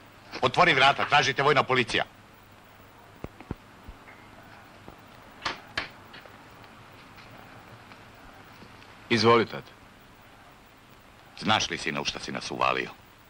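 Two men talk calmly nearby.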